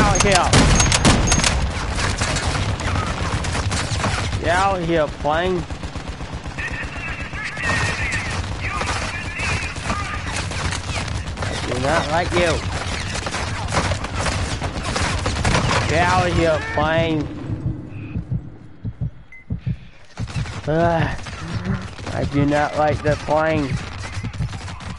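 Gunshots crack in rapid bursts.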